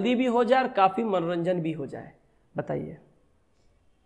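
A man talks calmly, as if lecturing, close to a microphone.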